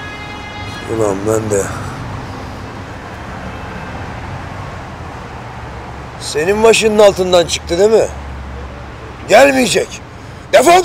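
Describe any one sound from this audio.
A middle-aged man speaks slowly and coldly.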